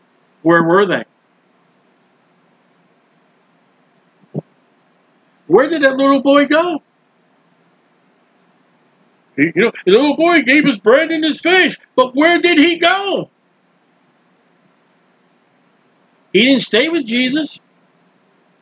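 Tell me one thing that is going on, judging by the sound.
A middle-aged man speaks with animation into a close microphone, in short bursts with pauses.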